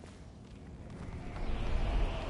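Something splashes into water.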